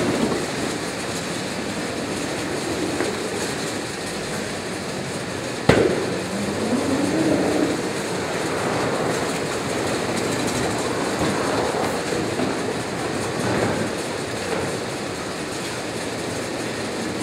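Conveyor rollers rattle and hum steadily.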